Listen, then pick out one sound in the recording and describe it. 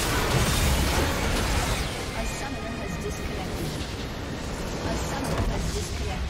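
Game spell effects crash and whoosh in a busy fight.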